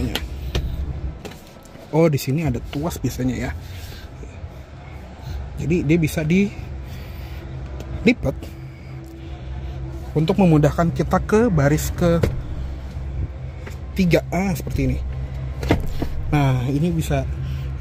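A hand rubs and pats a leather car seat.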